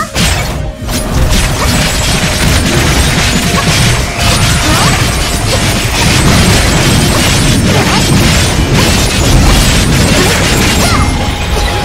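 Game sword slashes and magic blasts crash rapidly.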